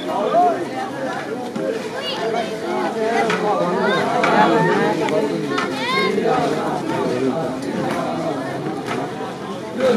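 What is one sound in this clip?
A crowd of men and boys chatters loudly close by, outdoors.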